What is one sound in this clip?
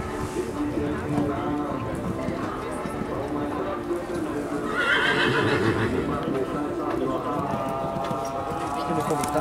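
A horse canters with soft, muffled hoofbeats on sand.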